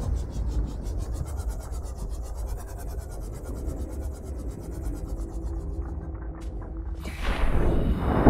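A small submarine's engine hums steadily underwater.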